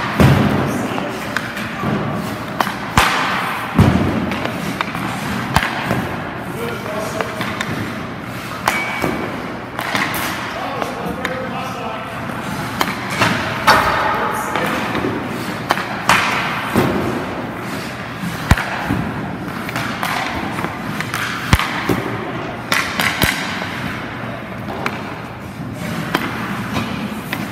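Skate blades scrape on ice.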